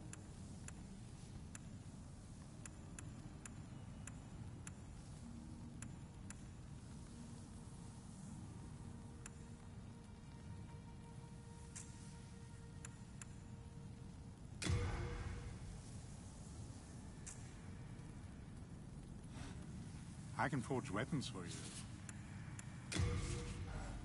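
Soft menu clicks tick again and again as a selection moves through a list.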